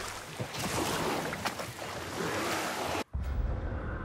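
Water splashes and laps against a wooden boat as oars row.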